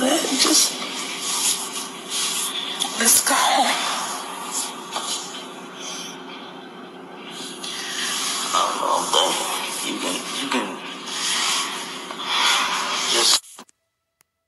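A man talks animatedly close by.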